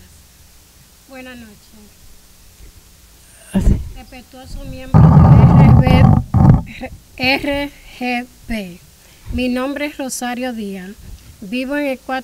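A woman speaks with animation into a microphone over a loudspeaker in a large hall.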